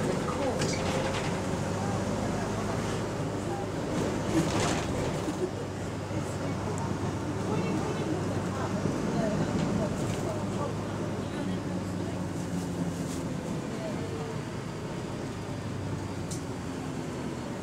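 A bus rattles and clatters as it drives.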